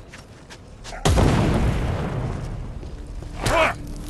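A flamethrower blasts out fire with a loud rush.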